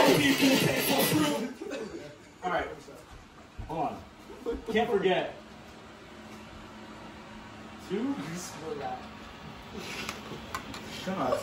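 Young men talk and laugh nearby.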